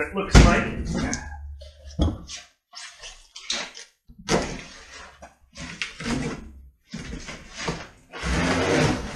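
Cardboard boxes scrape and rustle as they are shifted.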